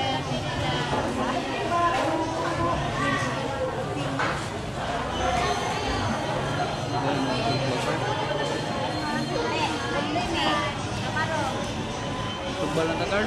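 Many men and women chatter all around in a busy crowd.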